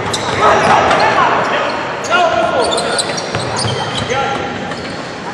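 Sneakers squeak sharply on a hard court.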